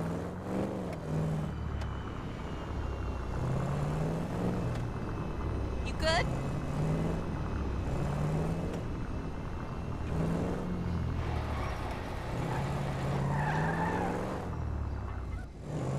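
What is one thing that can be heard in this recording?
A car engine hums steadily as a car drives slowly.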